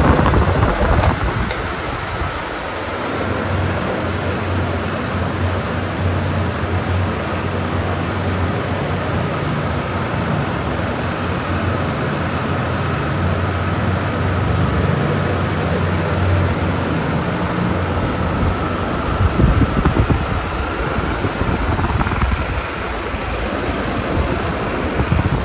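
Electric fans whir with a steady hum.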